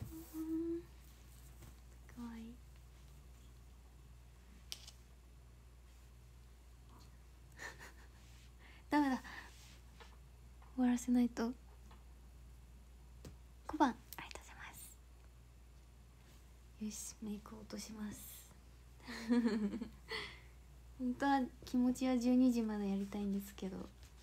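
A young woman talks casually and close up, in short bursts with pauses.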